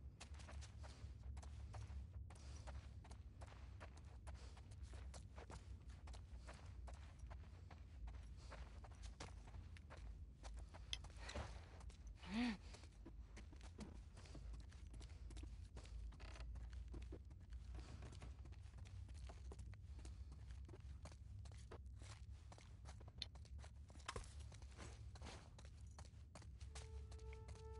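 Footsteps tread slowly across a hard, gritty floor.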